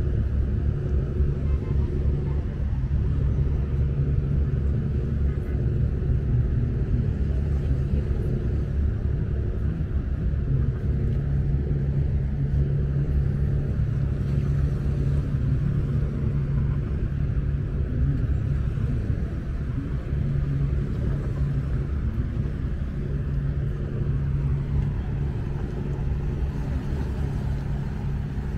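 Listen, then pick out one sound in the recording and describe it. Small waves lap against the stone shore.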